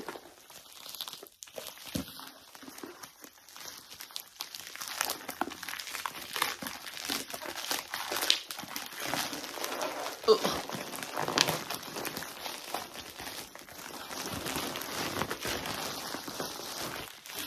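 A plastic mailing bag crinkles and rustles in someone's hands.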